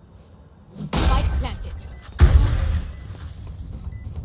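Gunshots ring out in a short burst.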